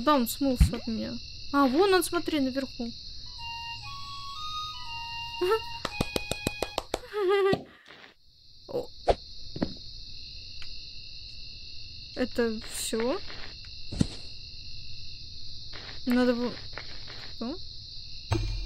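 A young woman talks with animation, close to a headset microphone.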